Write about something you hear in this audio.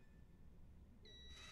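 An electronic keypad chimes with a short tone.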